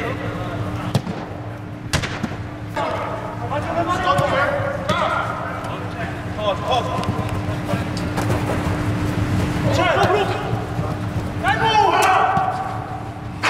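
Shoes scuff and patter on artificial turf.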